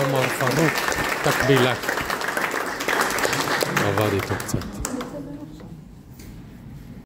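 A crowd of people talk and chatter nearby in an echoing room.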